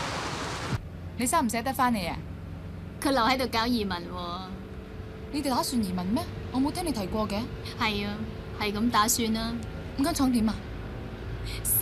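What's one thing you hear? A woman talks calmly and cheerfully close by.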